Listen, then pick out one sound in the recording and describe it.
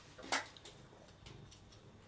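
A cat chews and laps food from a bowl close by.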